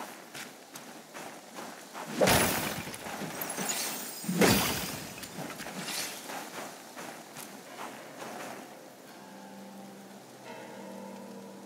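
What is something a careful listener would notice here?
Footsteps crunch quickly through snow.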